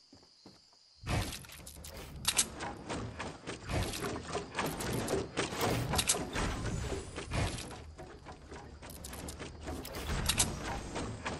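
Wooden walls and ramps are built with rapid clattering knocks.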